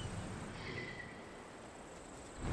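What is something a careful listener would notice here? An eagle gives a shrill cry.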